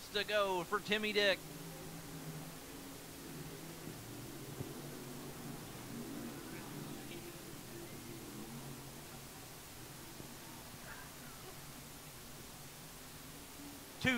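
Race car engines roar and drone in the distance.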